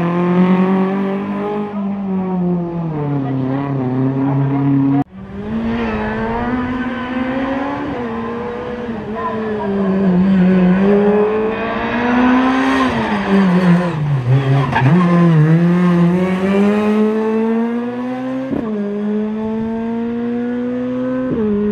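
A rally car engine revs hard and rises and falls in pitch as it races past.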